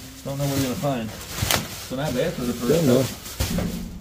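Plastic bags rustle as items are handled.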